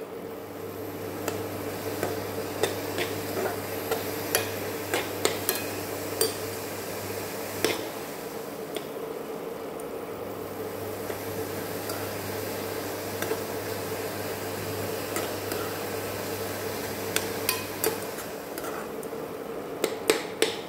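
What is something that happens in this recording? A metal spoon scrapes and clinks against a metal pan while stirring rice.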